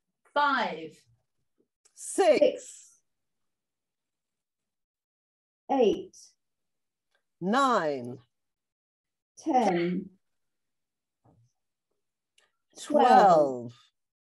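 A woman speaks slowly through an online call, calling out numbers with pauses between them.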